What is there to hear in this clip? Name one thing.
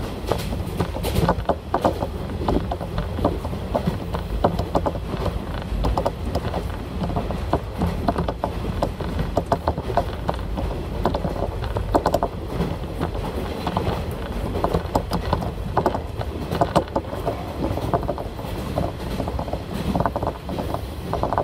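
A diesel railcar rumbles along the line, heard from inside.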